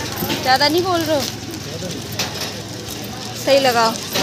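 A plastic wrapper rustles.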